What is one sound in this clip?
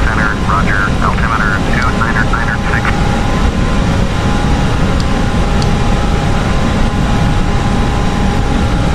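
Jet engines drone with a steady low rumble.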